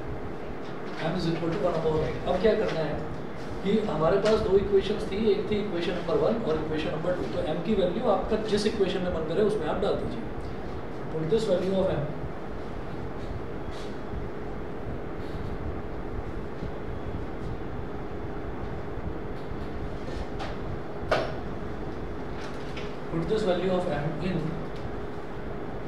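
A man explains calmly through a clip-on microphone.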